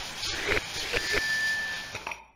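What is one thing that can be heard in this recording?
Coins chime brightly.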